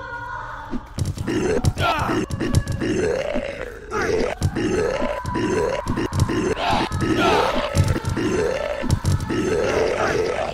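A creature snarls and groans close by.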